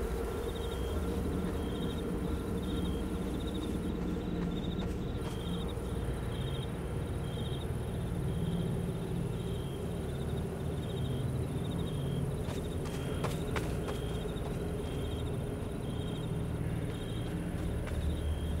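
Footsteps tread steadily on the ground.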